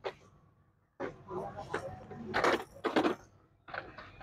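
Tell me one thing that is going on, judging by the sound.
A plastic toy scooter rattles as it is handled.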